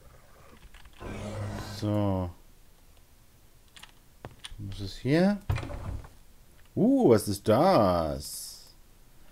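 A middle-aged man speaks animatedly, close to a microphone.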